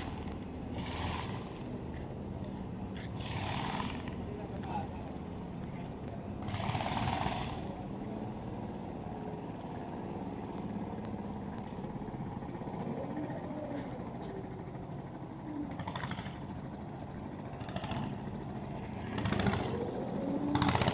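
A truck engine idles nearby with a steady low rumble.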